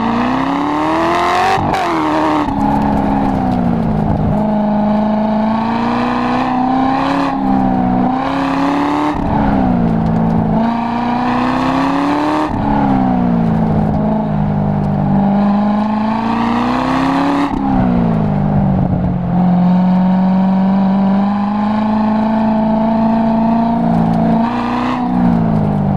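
Wind rushes loudly past an open car.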